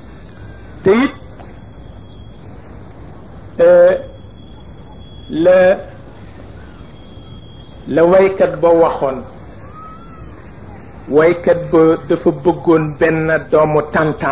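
An elderly man speaks slowly into a microphone, with pauses between phrases.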